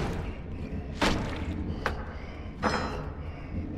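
A cleaver chops hard into meat on a wooden board.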